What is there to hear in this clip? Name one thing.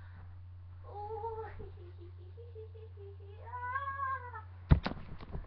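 A young person sings in a high, wavering voice close by.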